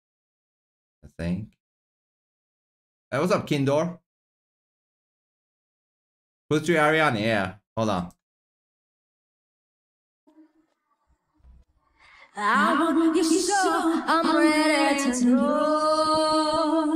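A young woman sings into a microphone in short phrases, then steadily.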